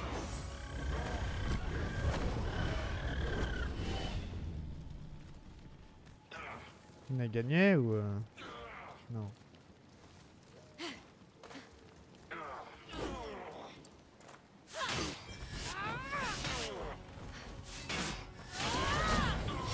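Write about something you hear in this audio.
A magic blast crackles.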